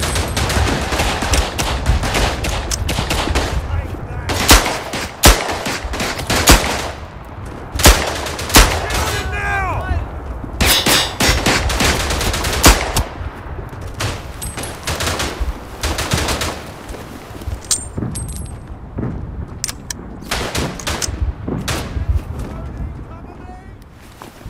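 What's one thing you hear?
A revolver's cylinder clicks open and shut during reloading.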